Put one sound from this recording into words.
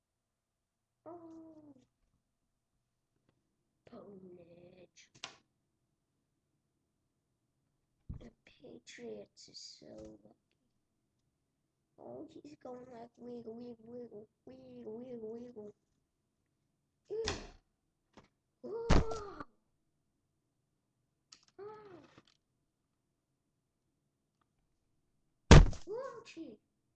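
A boy talks calmly and close by, in short bursts.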